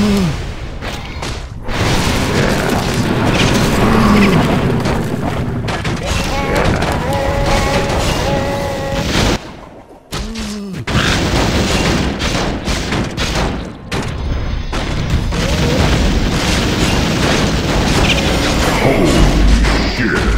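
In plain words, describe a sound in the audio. Game battle sounds of clashing blows and bursting spells crackle and boom.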